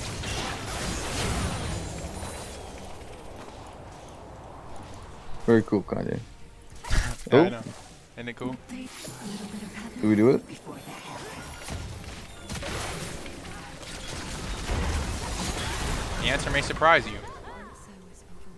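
Fantasy battle sound effects whoosh, zap and crackle as spells are cast.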